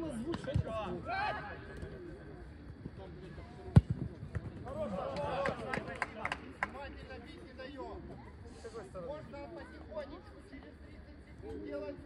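Women players shout and call out to each other across an outdoor pitch.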